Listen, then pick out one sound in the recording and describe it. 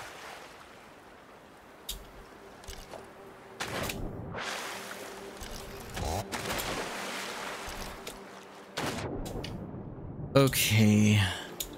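Water splashes and sloshes close by.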